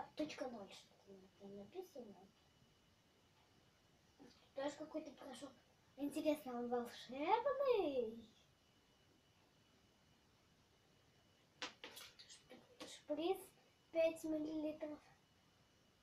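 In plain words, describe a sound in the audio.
A young girl talks calmly and close by.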